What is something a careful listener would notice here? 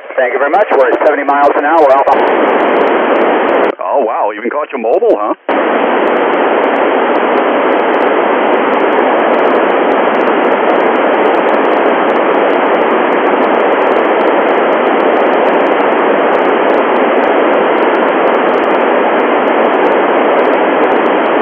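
A radio receiver hisses loudly with static.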